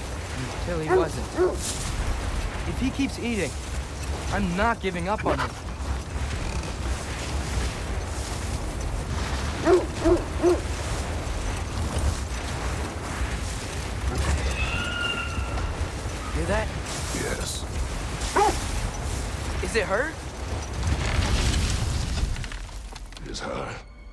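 A sled's runners hiss and rumble steadily over snow.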